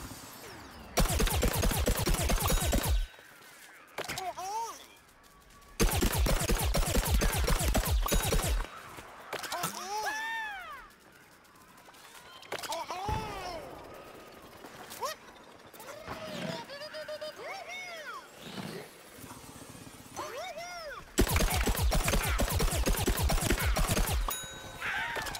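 Rapid shots fire in quick bursts.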